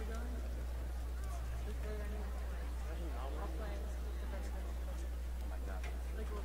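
A crowd of people chatters at a distance outdoors.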